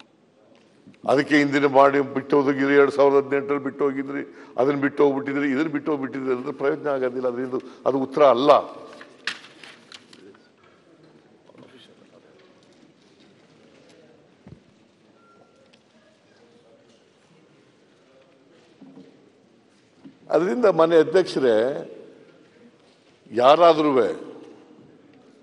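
An elderly man speaks forcefully into a microphone in a large hall.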